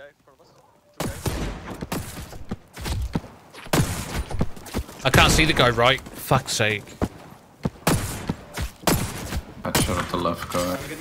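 A rifle fires in short bursts of gunshots.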